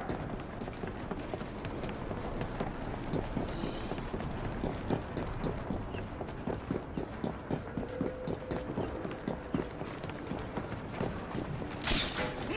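Footsteps run quickly over wooden sleepers.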